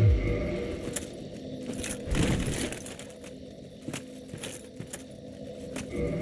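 Armoured footsteps clink and scrape on stone.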